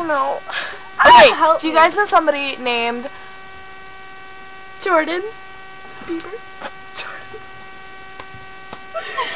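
A teenage girl laughs close to a laptop microphone.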